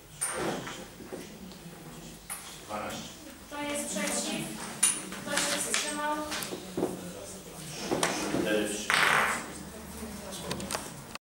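Several men and women talk over one another nearby.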